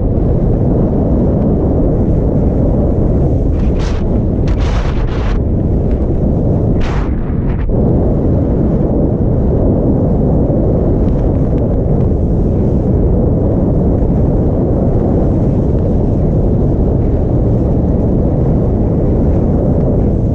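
Skis hiss and scrape steadily over packed snow.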